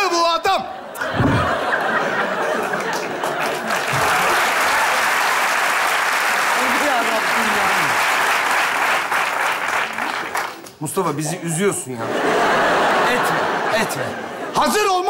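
A studio audience laughs and applauds loudly.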